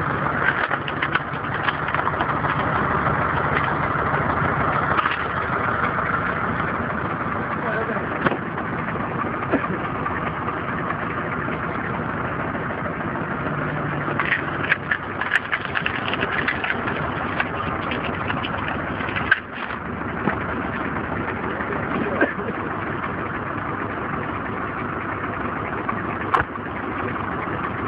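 A motor-driven screw splitter whirs steadily.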